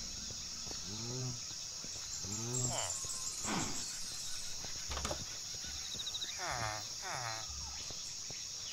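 Villagers mumble in short, nasal grunts nearby.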